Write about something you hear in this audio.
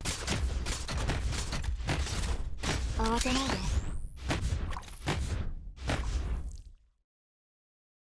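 Game sound effects of attacks and impacts play rapidly.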